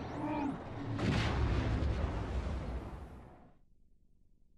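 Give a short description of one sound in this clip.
A large explosion booms and roars.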